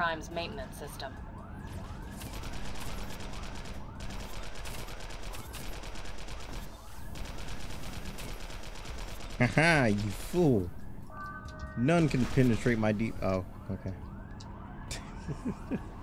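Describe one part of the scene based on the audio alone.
An energy weapon fires in rapid, repeated bursts.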